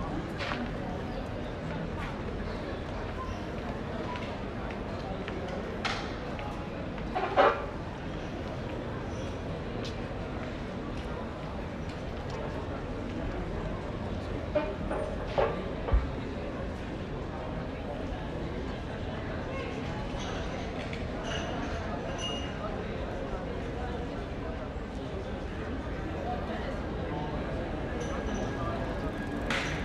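A crowd of people chatters in the open air of a busy street.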